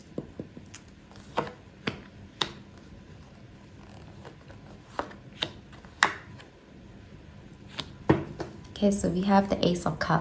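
Playing cards are laid down one by one on a cloth with soft taps.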